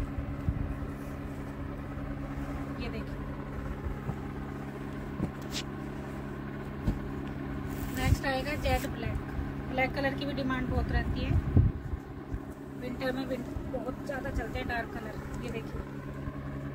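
Cloth rustles as fabric is handled and unfolded.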